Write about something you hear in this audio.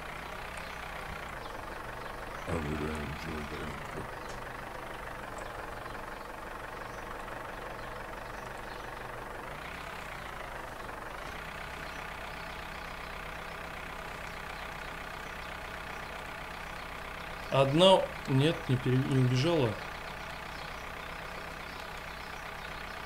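A tractor engine chugs steadily at idle.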